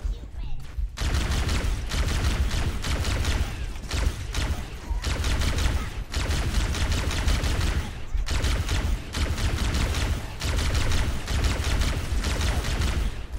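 A plasma gun fires in rapid bursts.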